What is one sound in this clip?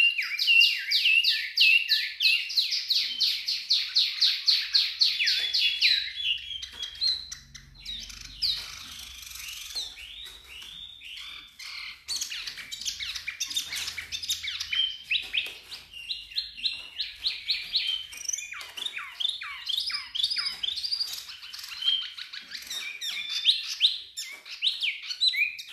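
A small caged bird sings a fast, chattering song of sharp chirps and trills.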